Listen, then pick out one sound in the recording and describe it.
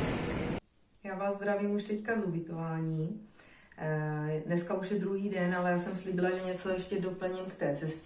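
A woman talks calmly and clearly close to a microphone in a quiet room.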